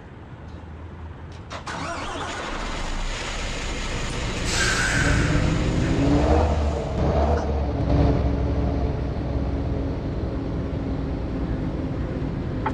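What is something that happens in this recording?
A truck engine rumbles and revs as the truck moves off.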